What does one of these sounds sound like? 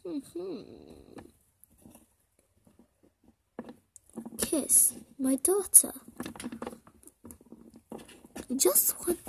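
Small plastic toy figures tap and knock softly on a hard surface.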